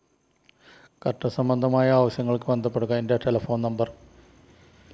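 A middle-aged man speaks close by, calmly and clearly.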